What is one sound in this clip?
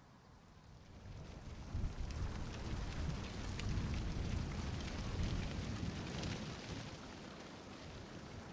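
Paper bunting flutters and rustles in the wind.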